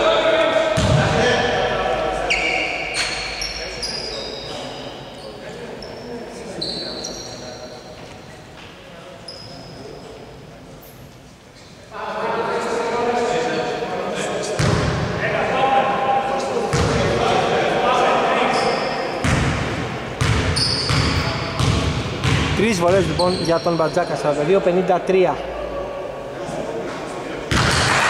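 Men shout and call out to each other across the gym.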